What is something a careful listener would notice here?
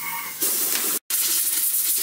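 Metal parts clink against each other.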